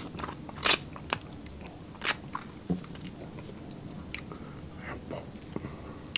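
A young man chews and smacks his lips close to a microphone.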